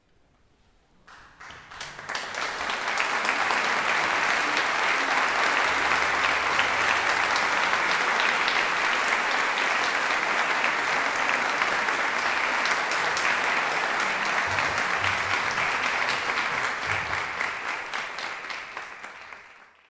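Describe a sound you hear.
An audience applauds loudly in a large hall, then the clapping fades.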